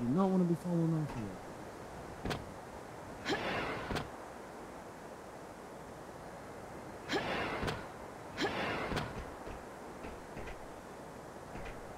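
Quick footsteps clank on a metal floor.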